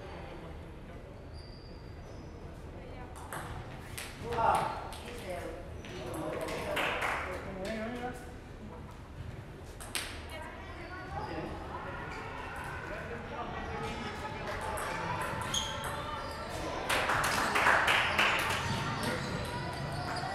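A table tennis ball clicks against paddles and the table in a large echoing hall.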